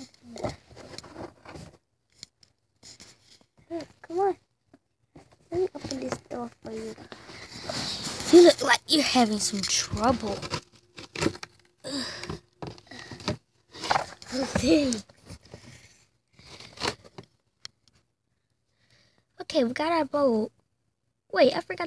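A child talks close by with animation.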